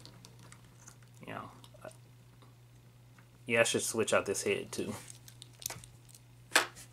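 Plastic toy joints click softly as an action figure is handled.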